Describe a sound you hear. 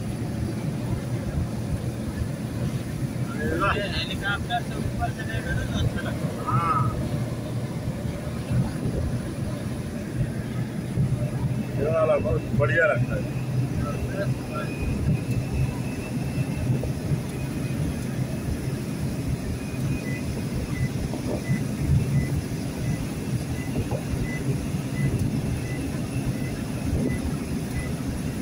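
A vehicle's engine rumbles steadily while driving.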